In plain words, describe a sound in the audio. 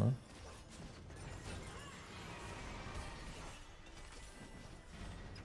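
Video game battle effects clash and whoosh quietly.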